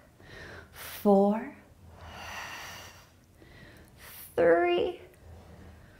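A woman speaks briefly and calmly, close to a microphone.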